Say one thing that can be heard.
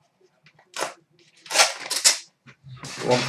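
A foil card pack rips open.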